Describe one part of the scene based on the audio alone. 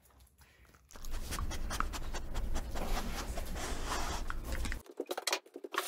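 A dog sniffs loudly right up close.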